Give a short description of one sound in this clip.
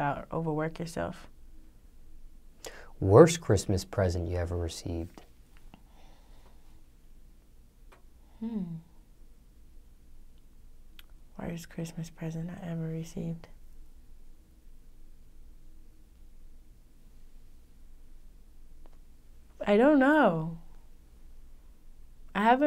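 A young woman speaks calmly and closely into a microphone, with pauses.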